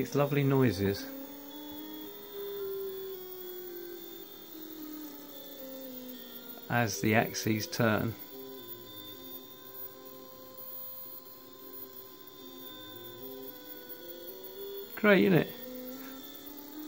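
Stepper motors whine in shifting musical tones as a table slides back and forth.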